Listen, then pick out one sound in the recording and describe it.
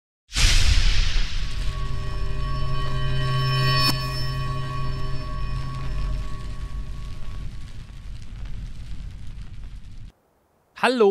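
A loud explosion booms and rumbles away slowly.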